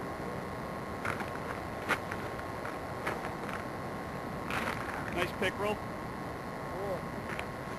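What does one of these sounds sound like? A fish flaps and slaps against a man's hands.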